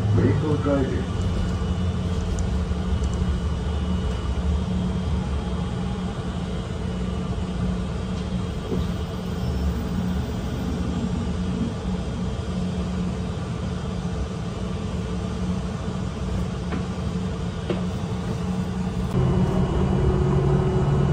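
A bus engine hums steadily from inside the bus.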